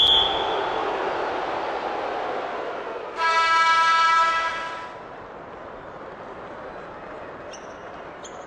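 A large arena crowd cheers and murmurs steadily.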